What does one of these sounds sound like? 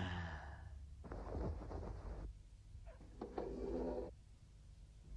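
A man speaks in a calm, refined voice.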